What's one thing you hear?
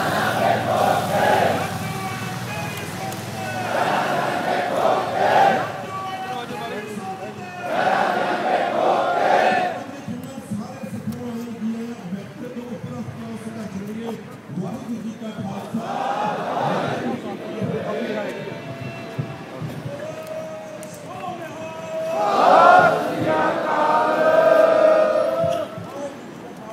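A large crowd chants loudly in unison outdoors.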